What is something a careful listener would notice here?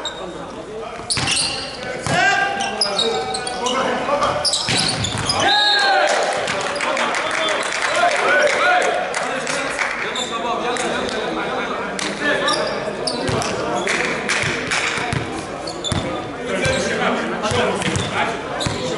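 Young men shout and call out to each other in a large echoing hall.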